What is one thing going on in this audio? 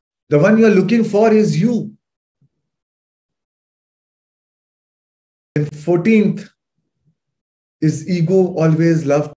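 A man speaks calmly into a microphone over an online call, pausing between phrases.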